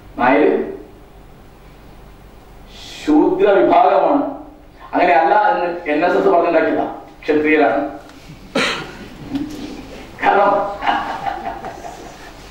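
An elderly man speaks into a microphone over a loudspeaker in an echoing hall.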